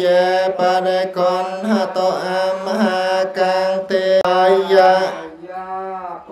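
Men chant together in a loud, steady drone.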